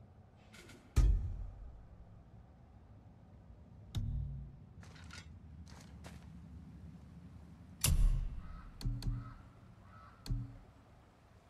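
Soft menu sounds chime and whoosh as selections change.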